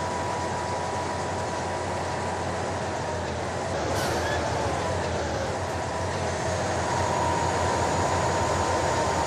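Tyres roll on the road with a steady rush.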